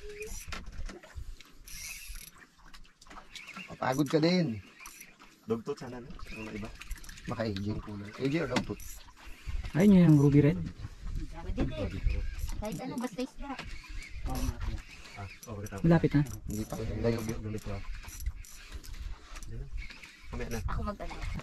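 A fishing reel whirs as a man winds in line.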